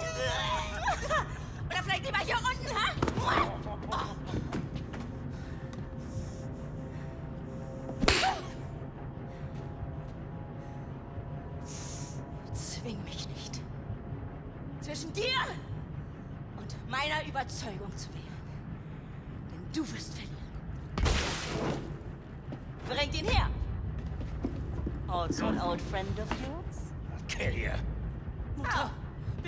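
A woman speaks coldly and menacingly nearby.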